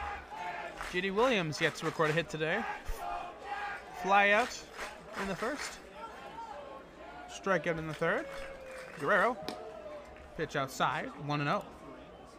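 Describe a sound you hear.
Spectators shout out loudly from the stands.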